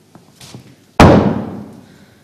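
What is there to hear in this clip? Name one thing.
A wooden chair knocks once on a stage floor.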